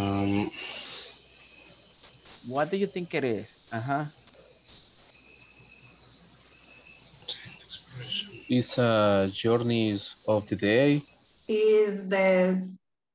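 A woman speaks through an online call, pausing between phrases.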